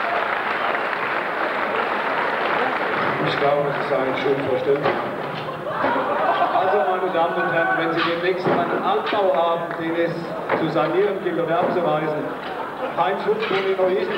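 Wooden boards clatter and knock as they are lifted and stacked.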